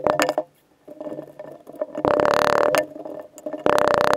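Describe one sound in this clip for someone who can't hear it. Hands press and crumble casting sand into a wooden flask.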